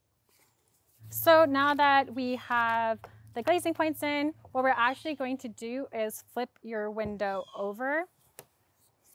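A young woman speaks calmly and explains, close by.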